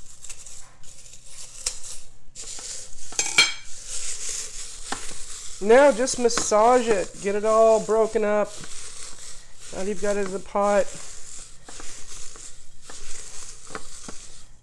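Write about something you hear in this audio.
Dry herb leaves rustle and crackle as hands press them into a pot.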